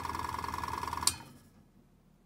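A switch clicks off.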